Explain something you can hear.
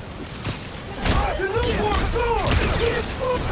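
Blows thud in a close fight.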